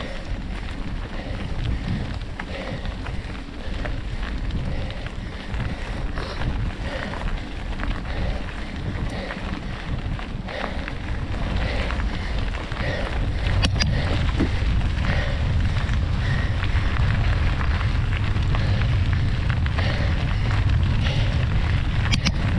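Bicycle tyres crunch over a gravel track.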